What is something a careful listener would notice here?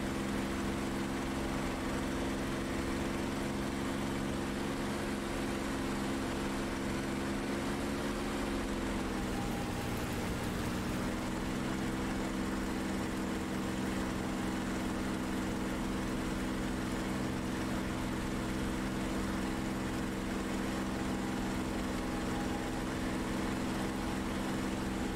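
A propeller aircraft engine drones steadily and dips slightly in pitch.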